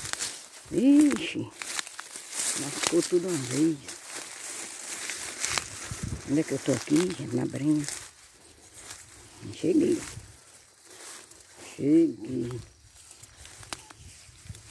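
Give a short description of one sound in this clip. Dry grass and leaves rustle close by.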